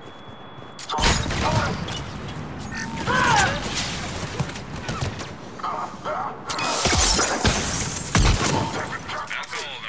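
Gunfire bursts rapidly in close combat.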